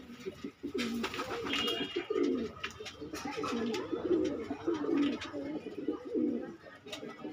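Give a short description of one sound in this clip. Doves coo softly and repeatedly, close by.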